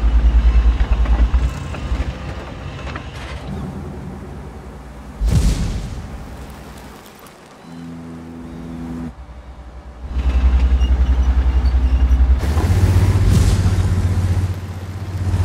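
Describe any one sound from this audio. A tank engine rumbles deeply.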